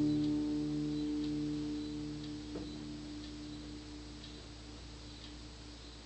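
An acoustic guitar chord rings out and slowly fades.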